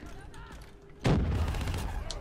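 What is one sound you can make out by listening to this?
Gunfire rings out in a sudden loud burst.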